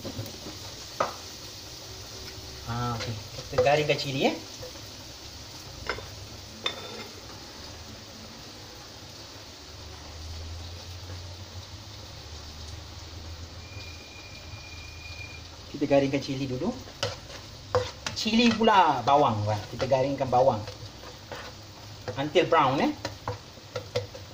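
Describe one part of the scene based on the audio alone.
A spatula scrapes and stirs food in a frying pan.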